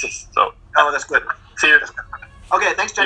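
A young woman speaks with animation through a laptop speaker.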